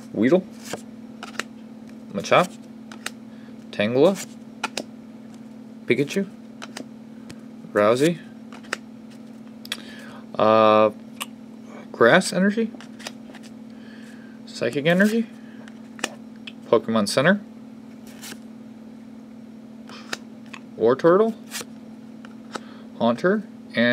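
Trading cards slide and flick softly as a hand flips through them one by one.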